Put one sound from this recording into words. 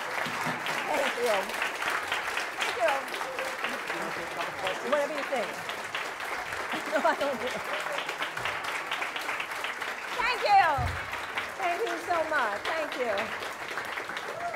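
An audience cheers.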